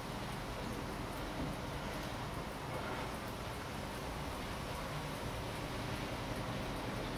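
A wristwatch ticks quickly and steadily, close up.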